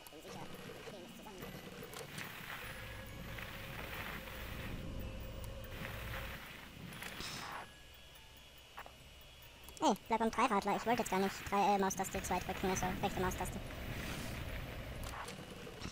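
A child's tricycle rolls across the floor.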